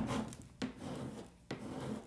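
A plastic scraper scrapes across a board.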